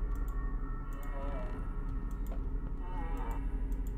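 A wooden cabinet door creaks open.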